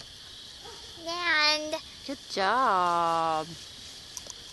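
A young girl speaks up close in a high, drawn-out singsong voice.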